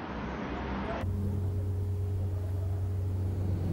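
An electric motor hums steadily.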